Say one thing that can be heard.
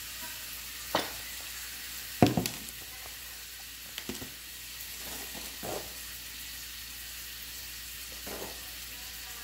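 Dishes and objects clunk down on a table.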